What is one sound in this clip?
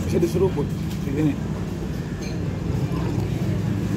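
A man slurps soup from a bowl.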